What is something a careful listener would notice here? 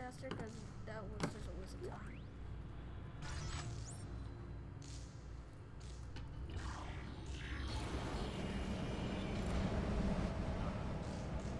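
Heavy boots thud on a metal floor.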